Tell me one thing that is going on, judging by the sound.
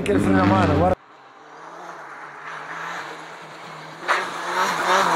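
A rally car approaches from a distance with a growing engine drone.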